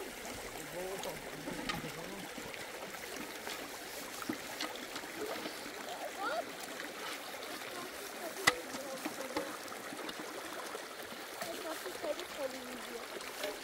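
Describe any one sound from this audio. A woman talks quietly nearby.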